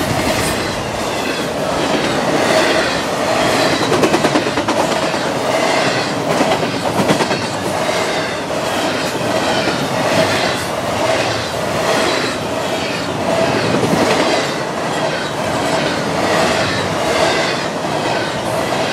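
Steel wheels clatter rhythmically over rail joints.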